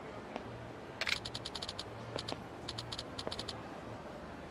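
Short electronic blips tick in quick bursts.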